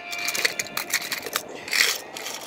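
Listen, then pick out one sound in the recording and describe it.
A small plastic toy wagon clicks and rattles as it is pushed along.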